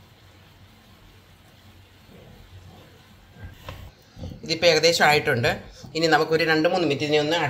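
A spoon scrapes and stirs thick food in a pan.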